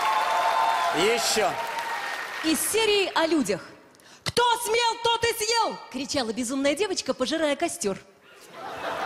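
A young woman speaks with animation into a microphone over loudspeakers.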